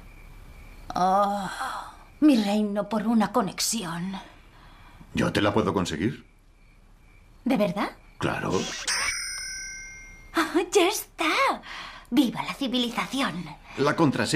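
A young woman talks expressively and close by.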